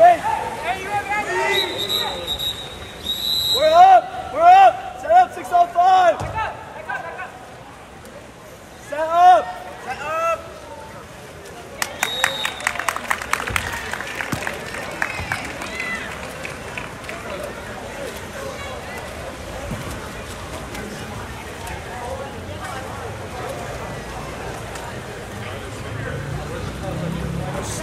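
Water splashes as swimmers thrash in a pool.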